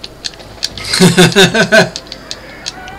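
A man laughs loudly into a close microphone.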